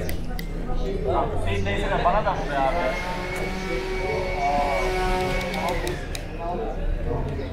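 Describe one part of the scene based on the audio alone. Men and women passing by talk nearby outdoors.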